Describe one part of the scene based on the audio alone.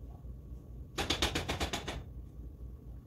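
A metal spoon clinks rapidly against a metal pot.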